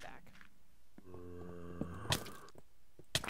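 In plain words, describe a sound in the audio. A zombie groans low and close.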